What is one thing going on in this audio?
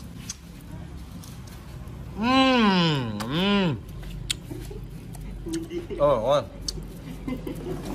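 Scissors snip and click.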